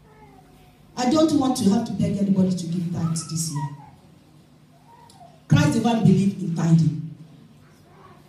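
A woman speaks with animation through a microphone, heard over loudspeakers in a large echoing room.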